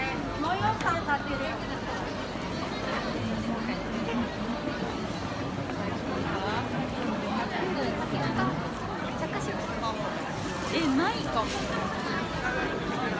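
A dense crowd of men and women chatters all around outdoors.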